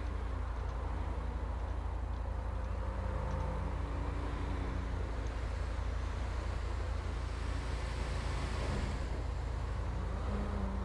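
Cars and a truck rush past on a busy road.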